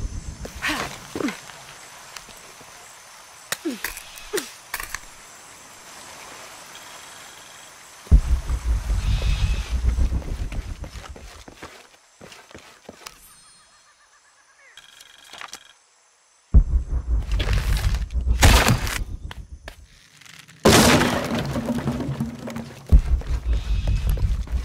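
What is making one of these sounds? Footsteps rustle through dense leaves and undergrowth.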